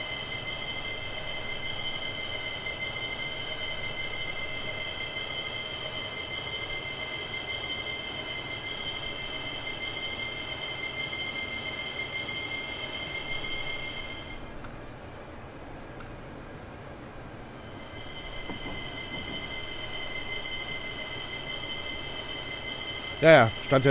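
Train wheels rumble over the rails.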